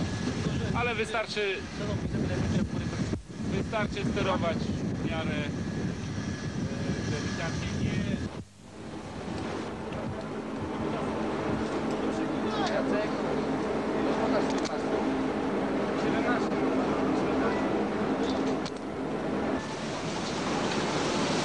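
Wind blows loudly outdoors.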